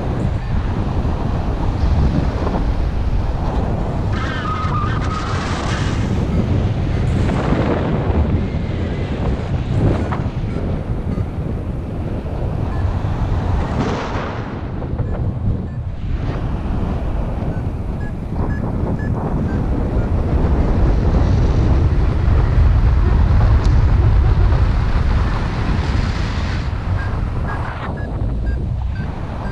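Wind rushes and buffets loudly against the microphone outdoors, rising and falling.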